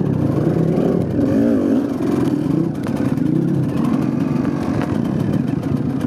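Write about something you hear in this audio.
A dirt bike engine revs and putters close by.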